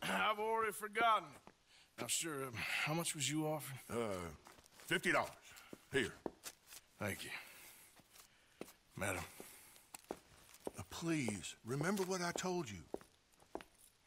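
A man speaks calmly in a low, gravelly voice.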